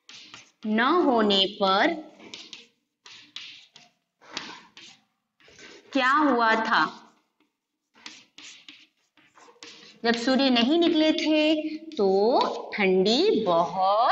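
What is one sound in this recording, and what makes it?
A woman speaks clearly and with expression, close by, as if teaching.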